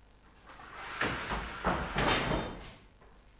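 Footsteps thud quickly across a wooden stage.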